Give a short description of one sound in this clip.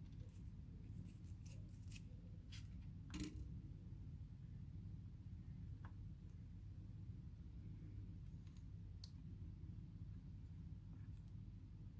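A small plastic tool clicks and scrapes against a computer part.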